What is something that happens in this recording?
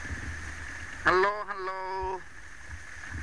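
An adult calls out close by in a long, drawn-out cry.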